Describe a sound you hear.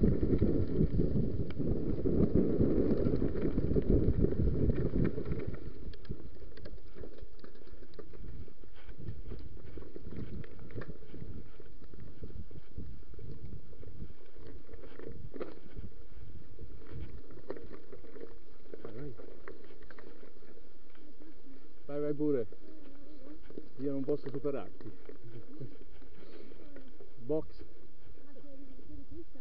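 Bicycle tyres roll and rattle over a bumpy dirt trail.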